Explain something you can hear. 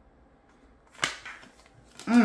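A card taps softly onto a table.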